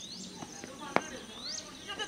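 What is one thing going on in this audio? A cricket bat strikes a ball with a sharp crack in the distance.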